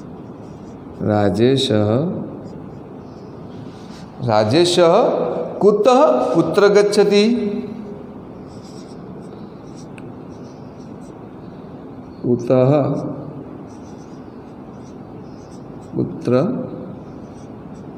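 A man speaks calmly into a microphone close by, in short phrases with pauses.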